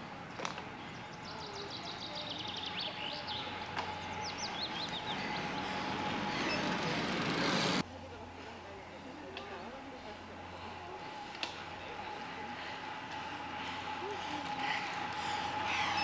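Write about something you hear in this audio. A bicycle's tyres whir closer on asphalt and pass by.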